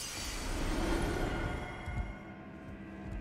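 A magical shimmer swells and then fades.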